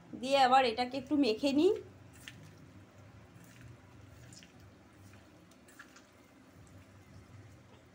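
Hands squish and mix raw meat in a metal bowl.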